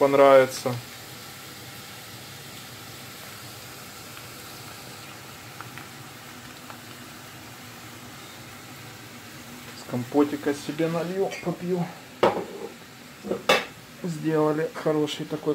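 Potatoes sizzle softly in a frying pan.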